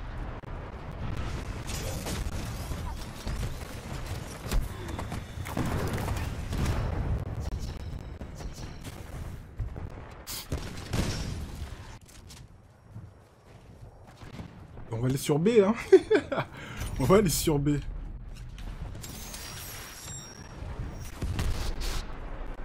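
Gunfire crackles and booms in a video game.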